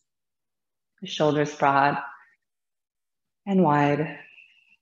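A woman speaks calmly and softly into a close microphone.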